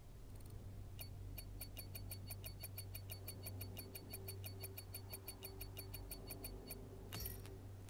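A rapid electronic ticking counts up points.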